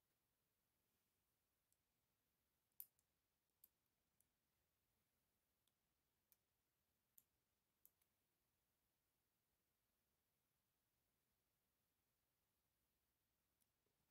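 A plastic pry tool clicks against a plastic casing.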